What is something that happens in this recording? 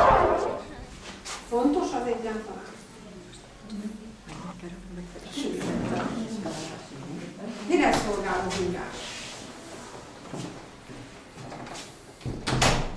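A woman speaks calmly to a group in a room.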